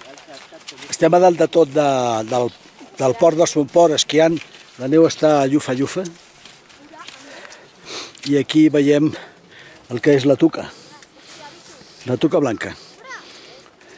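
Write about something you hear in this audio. An elderly man talks calmly close to a microphone, in short phrases.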